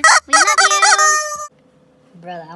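A woman speaks loudly and close up.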